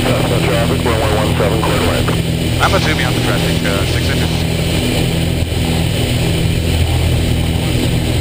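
A small plane's propeller engine drones loudly and steadily up close.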